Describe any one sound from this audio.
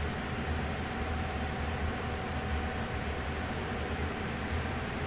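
Train wheels roll and clatter along the rails.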